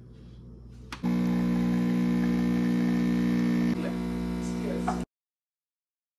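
An espresso machine pump hums loudly and steadily.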